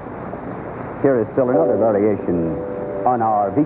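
A man speaks with animation through an old, muffled microphone.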